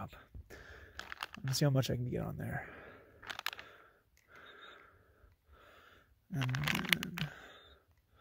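A plastic wrapper crinkles under a hand.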